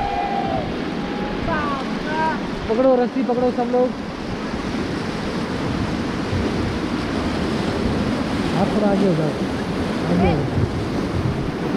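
Several young people on a raft shout and call out excitedly, outdoors over rushing water.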